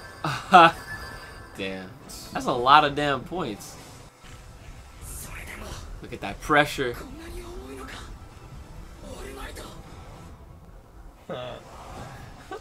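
A young man talks and laughs with animation nearby.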